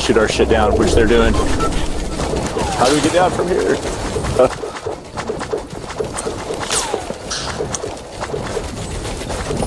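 Building pieces snap into place in a game with quick, repeated clicks.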